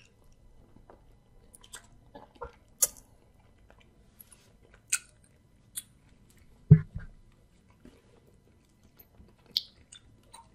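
A young man chews and smacks his lips loudly up close.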